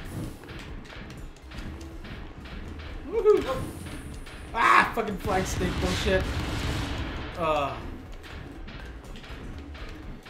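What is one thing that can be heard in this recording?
Explosions boom and crackle from a video game.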